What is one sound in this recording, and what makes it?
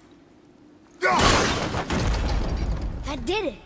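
A wooden drawbridge crashes down with a creak.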